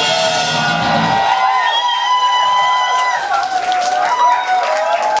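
Drums and cymbals are played.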